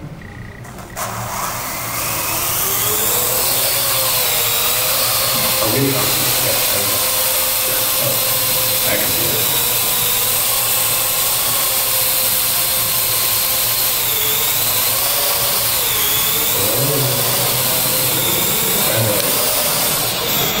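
A small drone's rotors whine steadily as it hovers and flies close by.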